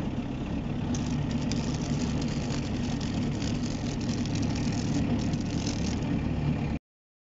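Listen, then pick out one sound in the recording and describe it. Tall grass brushes and swishes against a vehicle.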